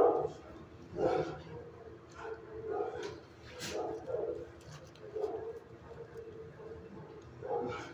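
A large dog sniffs at the floor.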